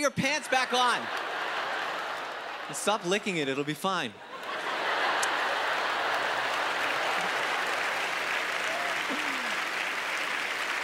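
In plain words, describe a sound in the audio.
A large audience laughs loudly in an echoing hall.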